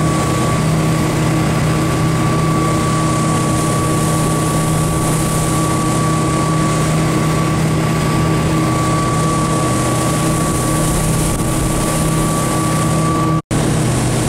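A motorboat engine drones loudly and steadily close by.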